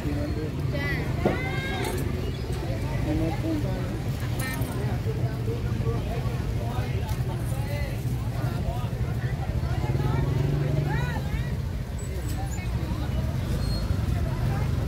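People chatter nearby in a busy outdoor crowd.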